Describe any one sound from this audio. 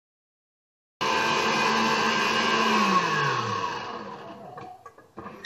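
An electric mixer whirs loudly, then winds down.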